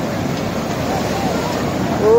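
Shallow waves wash and fizz over the sand.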